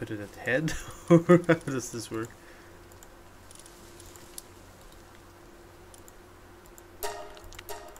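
Soft interface clicks sound as menu items are selected.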